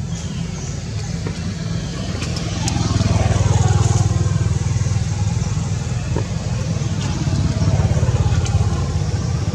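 A monkey chews on a piece of fruit.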